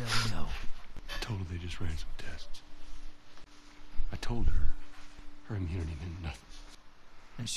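A man answers in a low, calm voice.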